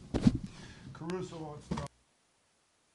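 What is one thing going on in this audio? A middle-aged man speaks briefly and casually into a microphone close by.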